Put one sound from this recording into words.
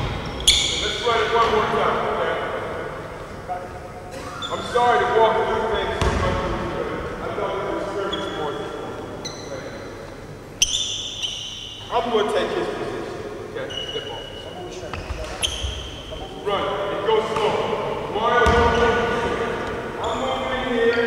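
A man calls out loudly across the court.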